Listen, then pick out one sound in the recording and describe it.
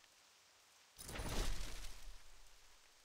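A soft interface swish sounds as a game window opens.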